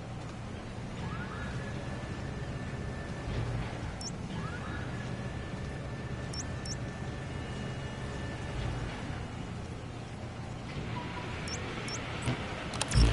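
Short electronic beeps chirp now and then.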